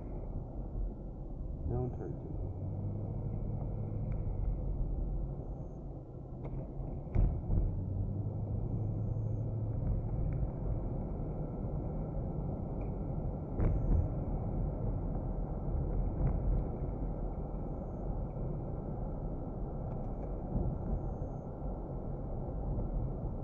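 Tyres rumble on a wet road.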